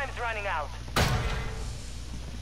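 A metal door bangs open.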